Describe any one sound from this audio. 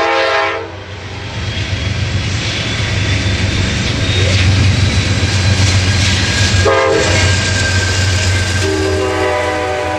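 A diesel locomotive rumbles loudly as it passes close by.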